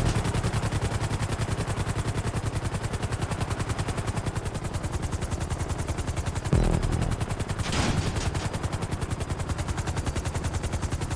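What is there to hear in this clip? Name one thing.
Helicopter rotor blades thump rapidly and steadily throughout.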